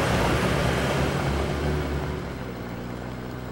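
A car engine rumbles as the car drives away.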